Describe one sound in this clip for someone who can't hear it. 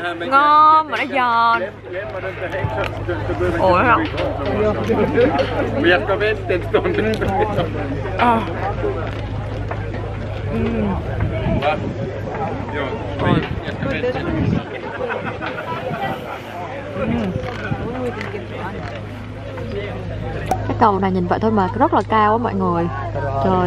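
A crowd chatters in the background outdoors.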